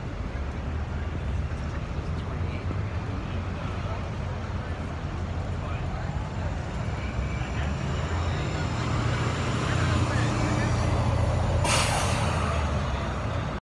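A city bus engine rumbles as the bus pulls past.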